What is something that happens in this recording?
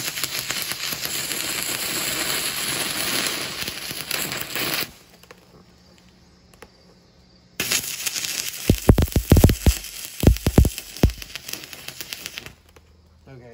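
An arc welder crackles and sizzles loudly.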